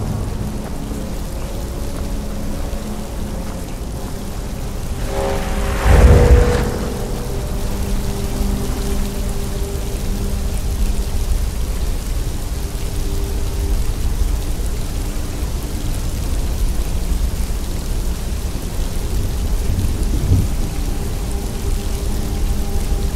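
A magic spell hums and crackles steadily close by.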